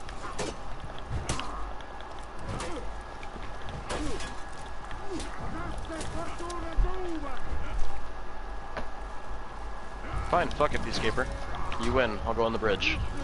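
Metal weapons clang and clash in a sword fight.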